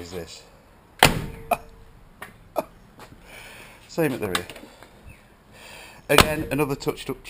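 A car door shuts with a heavy thud.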